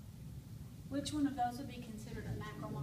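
A woman speaks clearly to a room.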